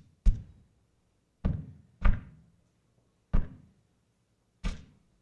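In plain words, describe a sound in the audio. Sharp electronic thumps sound one at a time, each fading away quickly.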